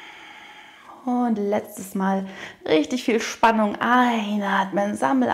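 A young woman speaks calmly in drawn-out tones close to a microphone.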